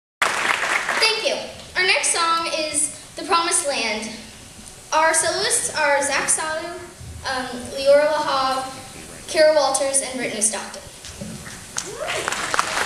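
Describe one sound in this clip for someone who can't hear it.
A choir of children sings together in a large echoing hall.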